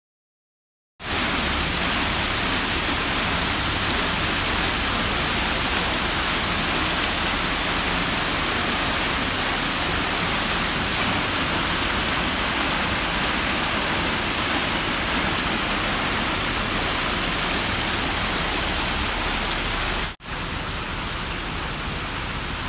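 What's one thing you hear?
Water rushes and splashes steadily down a cascade into a pool.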